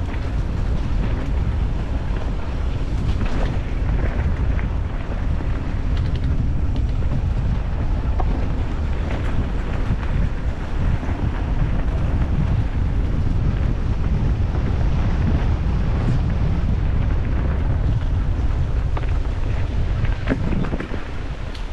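Wind rushes and rumbles loudly past a moving rider, then eases.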